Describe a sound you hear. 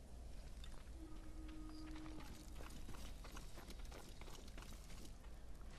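Footsteps rustle softly through tall grass.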